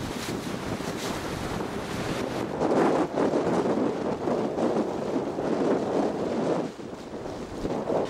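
Waves wash over rocks along a shore outdoors in wind.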